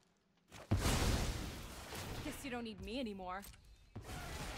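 A swooshing game sound effect rushes past.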